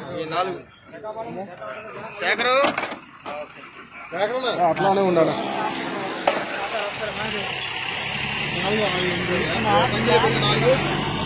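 Men talk nearby outdoors, speaking with animation.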